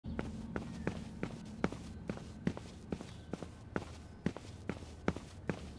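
Footsteps tap steadily on stone stairs.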